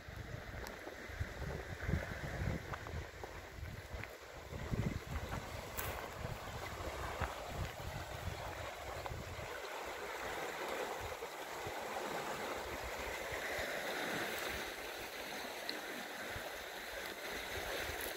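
Water rushes steadily through a channel.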